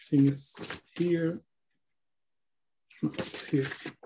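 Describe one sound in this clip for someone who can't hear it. Paper rustles as a sheet is lifted and moved.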